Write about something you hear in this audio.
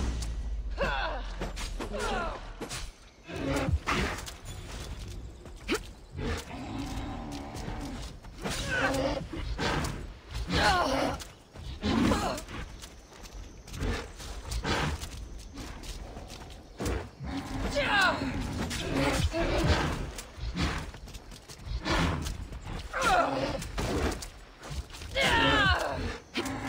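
A spear swishes and strikes a large animal.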